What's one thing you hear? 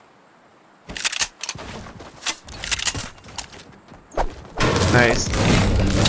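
A pickaxe strikes metal in quick, sharp blows.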